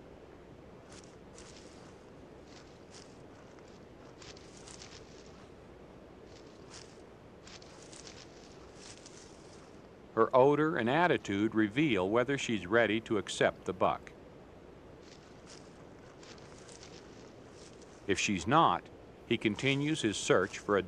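A deer's hooves crunch and rustle through dry leaves.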